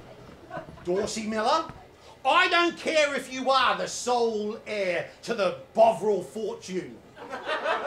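A middle-aged man shouts and laughs loudly.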